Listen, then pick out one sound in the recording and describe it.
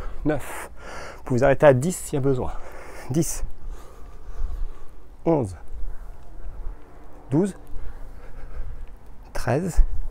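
A man speaks calmly, close by, in short phrases.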